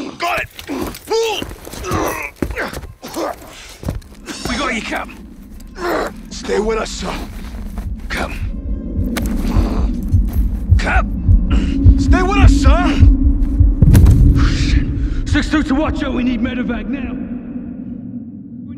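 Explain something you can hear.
A man speaks urgently through a radio headset.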